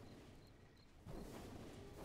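Magic spells and weapon blows clash in a fast fight.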